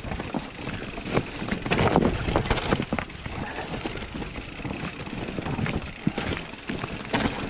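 Bicycle tyres crunch and bump over rocky ground.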